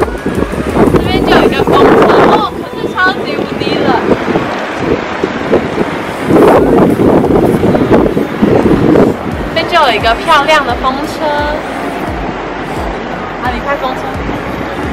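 A young woman talks cheerfully close to the microphone.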